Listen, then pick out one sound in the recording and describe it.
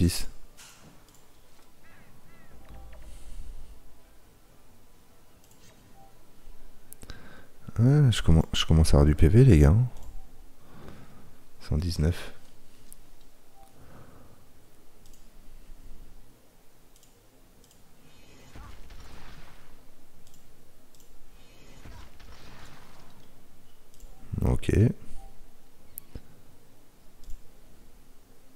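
A man talks casually into a close microphone.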